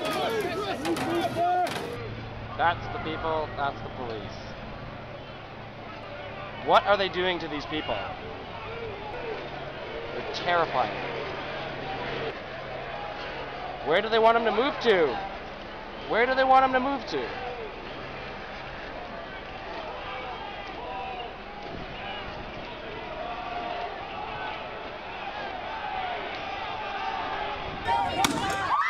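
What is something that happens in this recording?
A large crowd shouts and chants outdoors.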